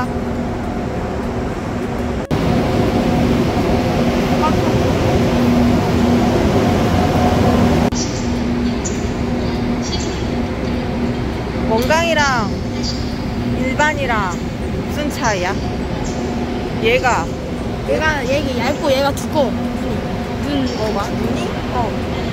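A parked high-speed train hums steadily.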